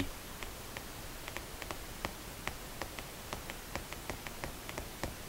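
Footsteps tap on pavement.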